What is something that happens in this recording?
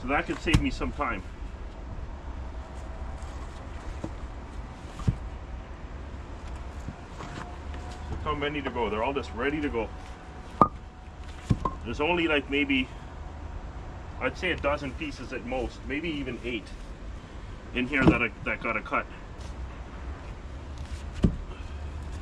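Wooden logs knock and thud against each other.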